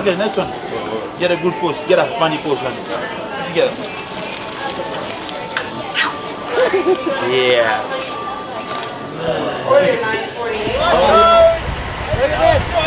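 Young men talk and laugh close by.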